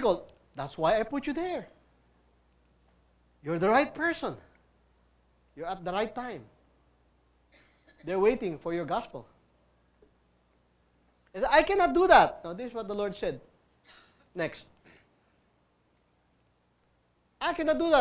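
A man speaks with animation in short bursts.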